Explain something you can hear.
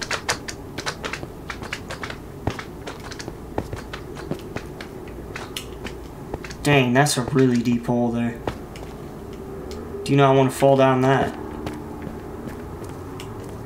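Short digging taps from a video game sound in quick succession.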